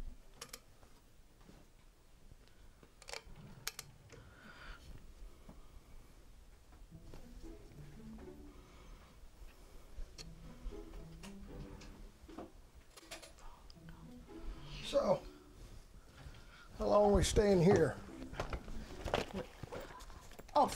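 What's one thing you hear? Clothes rustle as they are handled.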